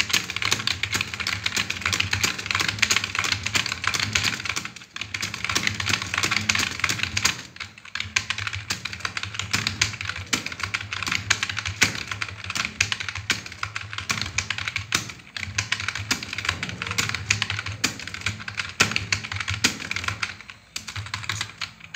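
Keyboard keys clatter in rapid, steady typing.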